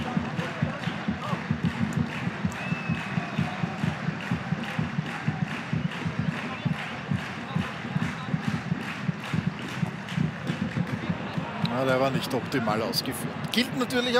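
Drums beat in a steady, fast rhythm among the crowd.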